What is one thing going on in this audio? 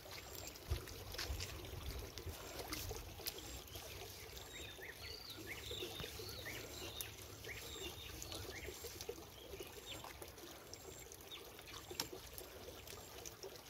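Water splashes softly in a shallow muddy stream.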